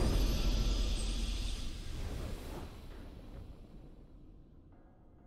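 A triumphant game victory sound swells and slowly fades away.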